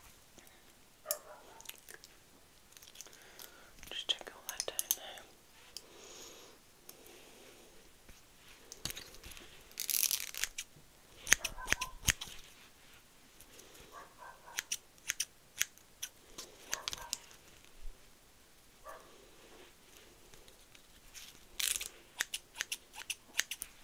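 Plastic clips and objects click and tap close by.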